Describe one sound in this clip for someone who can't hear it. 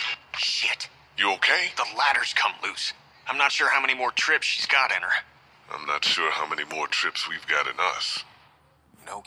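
A man speaks with concern, close by.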